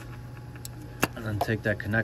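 A plastic electrical connector clicks loose.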